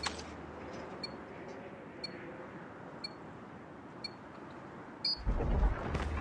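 A countdown timer beeps once each second.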